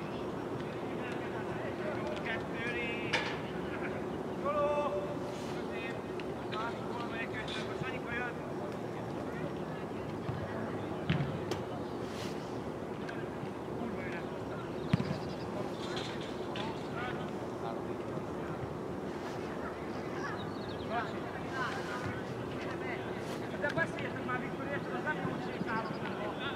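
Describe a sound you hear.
Young men shout to each other across an open field, heard from a distance.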